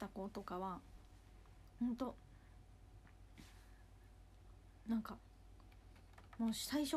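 A young woman speaks in short bursts close to a microphone.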